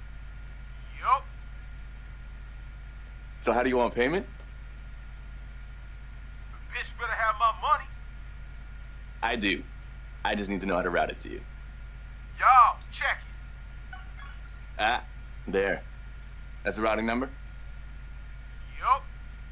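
A man talks on a phone in short, tense bursts.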